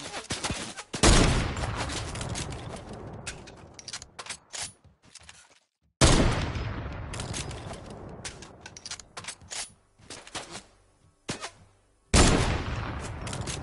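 A sniper rifle fires with a loud boom that echoes away.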